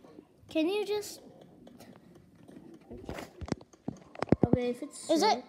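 A game on a tablet plays short tuneful sounds through a small speaker.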